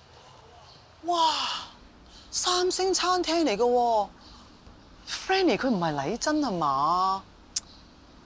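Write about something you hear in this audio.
A woman calls out loudly.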